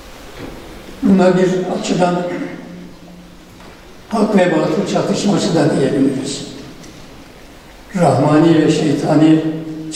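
An elderly man speaks calmly into a microphone in bursts.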